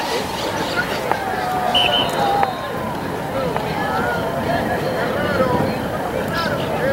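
Players shout to each other on an open field.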